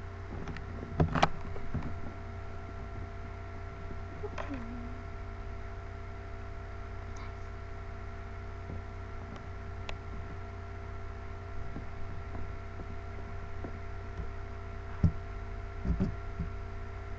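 A small toy lands on bedding with soft thumps.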